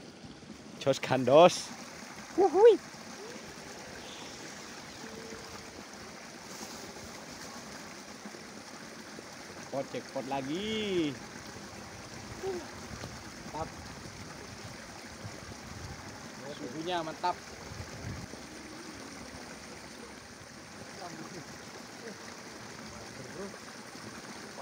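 A small stream trickles softly outdoors.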